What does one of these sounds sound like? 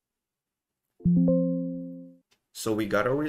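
A computer notification chime sounds once.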